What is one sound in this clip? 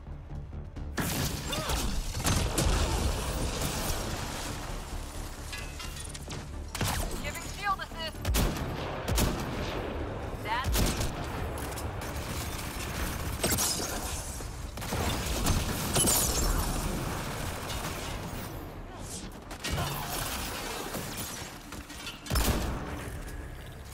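Gunshots and energy blasts crack repeatedly.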